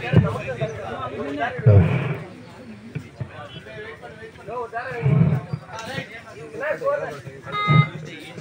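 A crowd of young men shouts and cheers.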